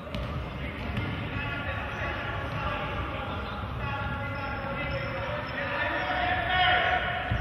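A ball thuds against a foot in a large echoing hall.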